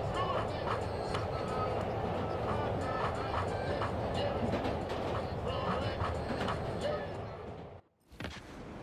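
A subway train rumbles and rattles along the tracks.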